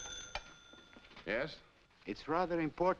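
A man speaks into a telephone.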